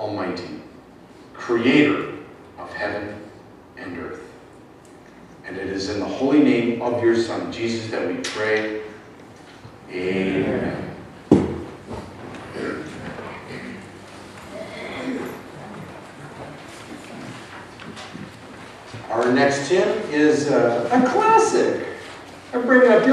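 A man speaks calmly, heard in a room with some echo.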